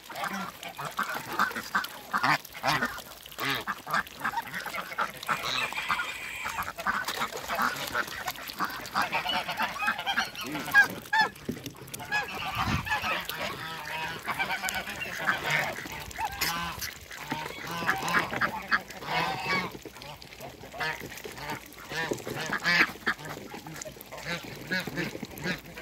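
Ducks quack loudly and often, close by.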